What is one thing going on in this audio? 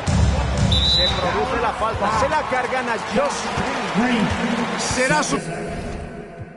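Sneakers squeak on a hardwood court in a large echoing arena.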